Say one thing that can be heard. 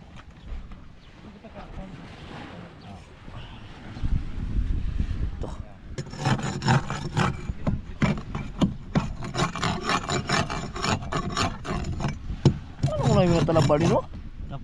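A hand scrapes and digs through loose sand close by.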